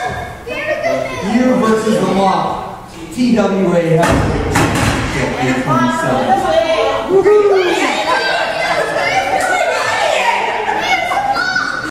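A crowd shouts and chants loudly in an echoing hall.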